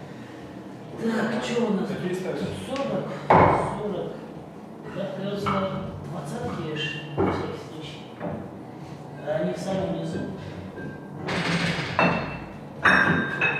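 A man talks casually nearby in an echoing room.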